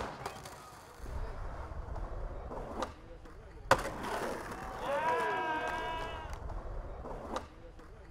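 Skateboard wheels roll over pavement.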